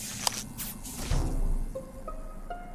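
A short electronic alarm blares with a deep boom.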